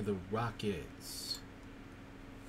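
A card slides against other cards in a stack.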